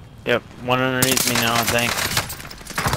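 A submachine gun fires a rapid burst.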